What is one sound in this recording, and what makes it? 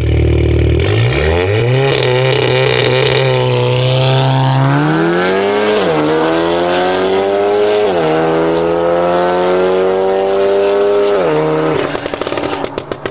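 Two car engines roar as the cars launch and accelerate away through the gears.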